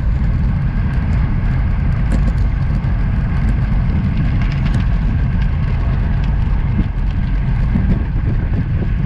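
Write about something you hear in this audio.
Wind rushes and buffets loudly past a moving bike.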